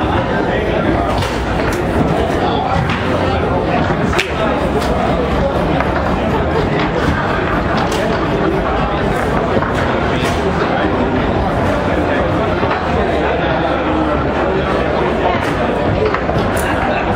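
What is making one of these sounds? A crowd murmurs and chatters in a large room.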